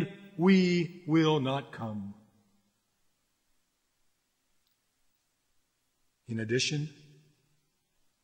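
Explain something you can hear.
A man speaks calmly and clearly, close to a microphone, with a long pause.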